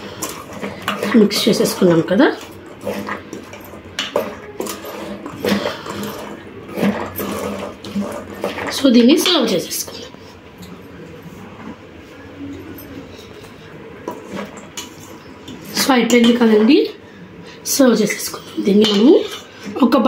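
A spatula stirs and scrapes food in a metal bowl.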